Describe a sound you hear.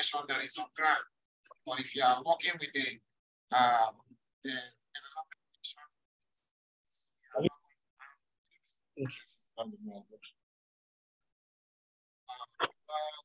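A man speaks calmly into a microphone, explaining in bursts with pauses.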